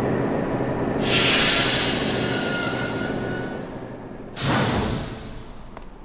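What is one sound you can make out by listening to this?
A racing vehicle whooshes loudly past.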